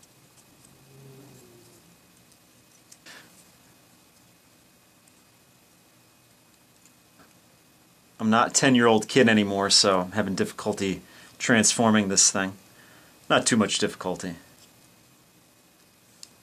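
Small plastic parts click and snap as they are handled.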